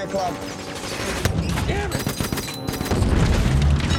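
Machine guns rattle in rapid bursts.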